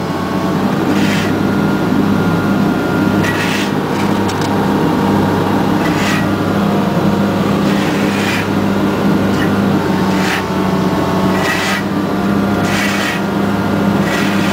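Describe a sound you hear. A heavy metal container clanks and bangs as it is lowered.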